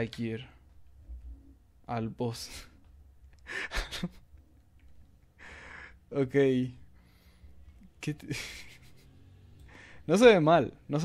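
A man speaks in short, confident bursts, close to the microphone.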